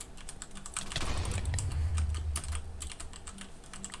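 Blocks crunch and crack as they are broken in a video game.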